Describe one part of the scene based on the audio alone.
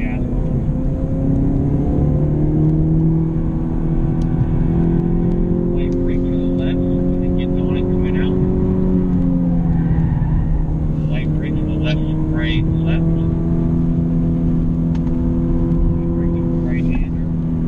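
A car engine roars loudly, rising and falling in pitch as the gears change.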